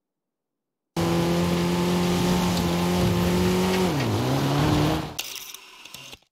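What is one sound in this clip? A car engine hums steadily as a small car drives over grass.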